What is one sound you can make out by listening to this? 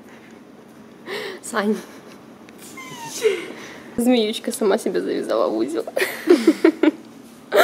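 A young girl talks and laughs excitedly nearby.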